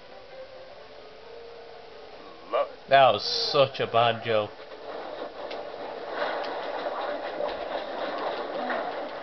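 Video game sound effects play through a television speaker.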